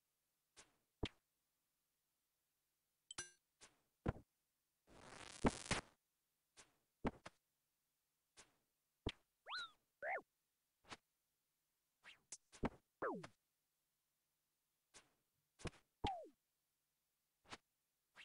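Short, sharp video game combat sounds of weapon hits come again and again.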